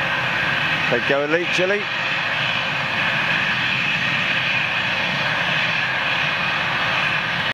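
A jet engine roars loudly as an airliner climbs away.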